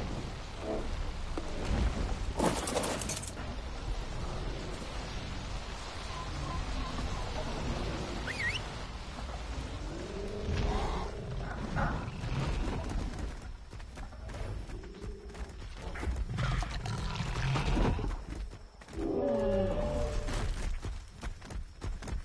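Large creatures growl and roar nearby.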